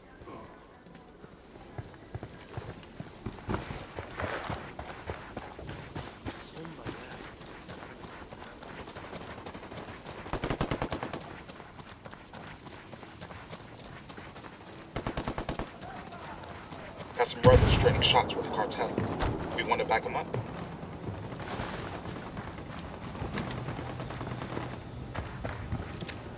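Footsteps crunch on gravel as a soldier runs.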